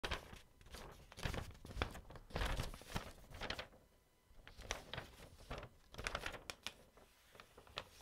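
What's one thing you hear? A sheet of paper rustles and crinkles close by.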